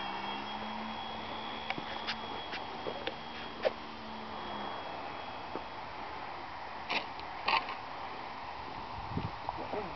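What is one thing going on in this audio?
Footsteps scuff on a paved road.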